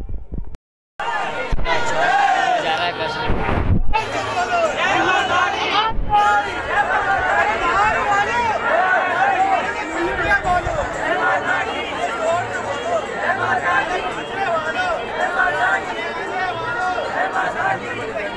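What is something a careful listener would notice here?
A large crowd chatters and calls out loudly outdoors.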